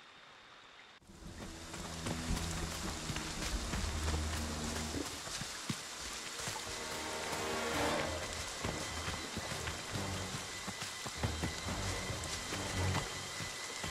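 Branches and leaves brush and swish against a moving body.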